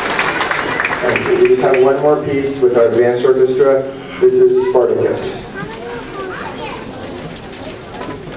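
A man speaks calmly into a microphone, heard over a loudspeaker in an echoing hall.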